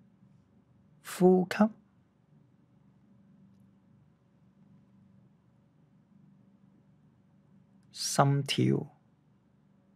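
A man speaks calmly in an echoing room, in short phrases.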